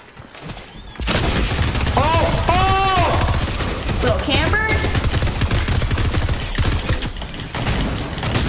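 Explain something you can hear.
Gunshots blast rapidly in a video game.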